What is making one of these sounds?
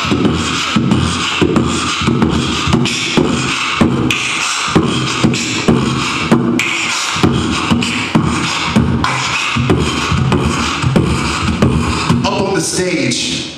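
A man beatboxes rhythmically into a microphone over a loudspeaker.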